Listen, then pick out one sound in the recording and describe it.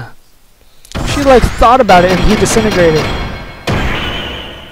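An energy blast fires with a loud roaring burst.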